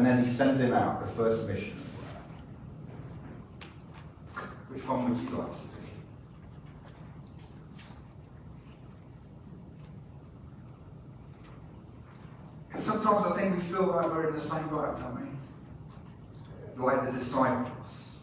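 A man speaks calmly into a microphone, with pauses, in an echoing hall.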